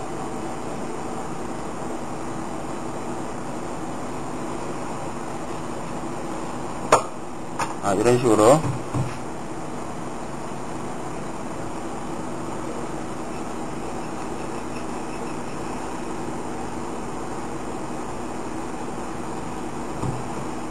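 A knife slices softly through raw fish.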